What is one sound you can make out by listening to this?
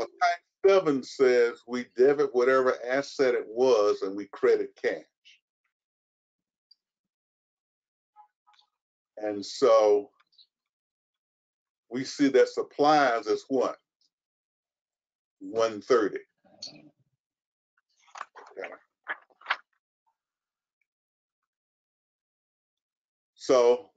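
A man speaks calmly through an online call, in bursts with pauses.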